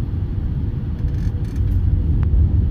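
Landing wheels thump onto the runway.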